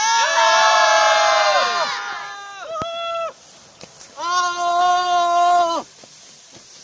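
A group of men and women sing loudly in unison outdoors.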